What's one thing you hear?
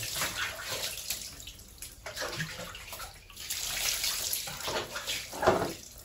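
Water trickles and splashes onto a plastic stool.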